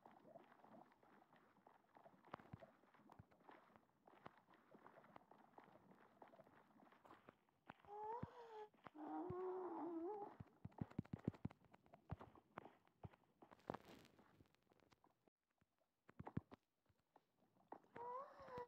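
Footsteps crunch steadily on stone.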